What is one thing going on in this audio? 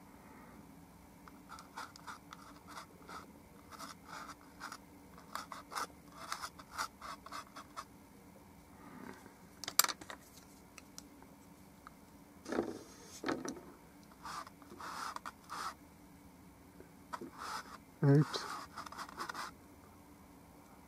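A paintbrush strokes softly across canvas.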